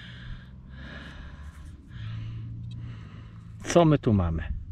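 Fingers rub dirt off a small object.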